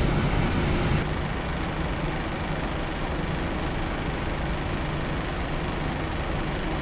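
A jet engine hums more quietly inside a cockpit.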